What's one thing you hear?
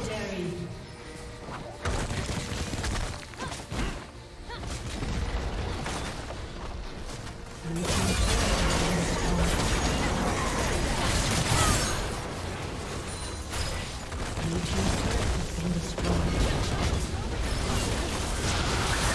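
Fantasy battle sound effects clash, zap and crackle.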